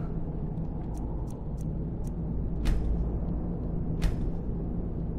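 Soft interface clicks tick several times as menu options are selected.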